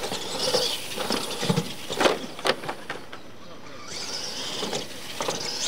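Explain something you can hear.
Plastic wheels of a radio-controlled truck thump on a wooden ramp.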